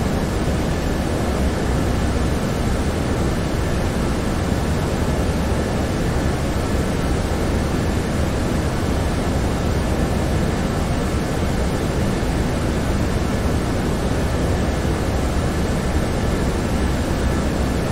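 A jet airliner's engines roar steadily from inside the cockpit.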